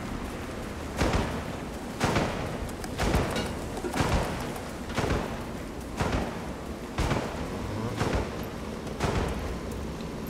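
Footsteps crunch on dirt and gravel at a steady walking pace.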